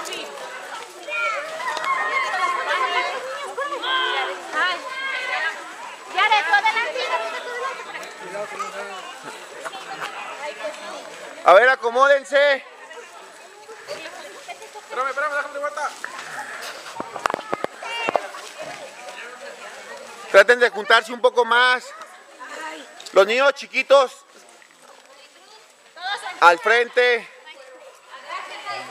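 Children chatter and call out excitedly nearby, outdoors.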